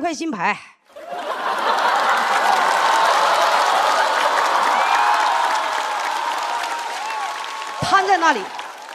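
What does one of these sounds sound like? An audience laughs and applauds loudly in a large hall.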